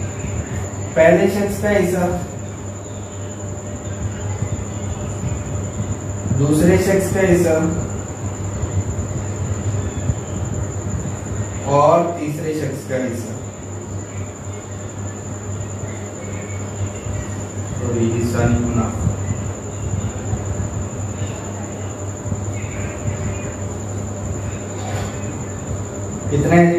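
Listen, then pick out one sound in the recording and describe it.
A man speaks nearby in short, calm phrases.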